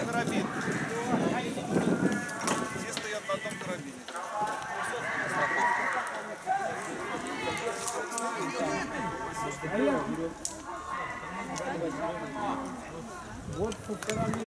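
Young people talk and call out to each other outdoors, a little way off.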